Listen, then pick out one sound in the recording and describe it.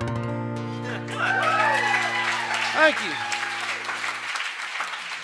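Guitars ring out a final chord.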